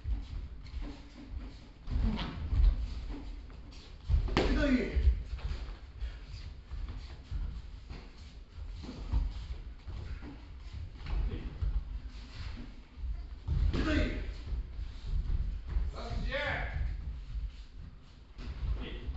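Bare feet thump and shuffle on a padded floor.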